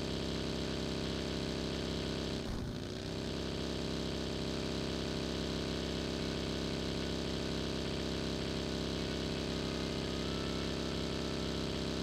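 A buggy engine drones steadily.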